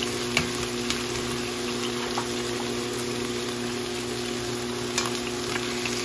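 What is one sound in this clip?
A wooden spatula knocks and scrapes against a pan.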